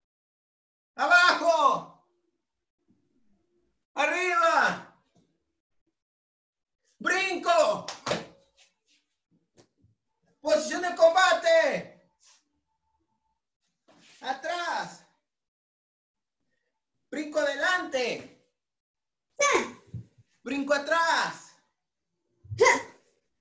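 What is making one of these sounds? A young man speaks loudly and with animation in short bursts over a microphone.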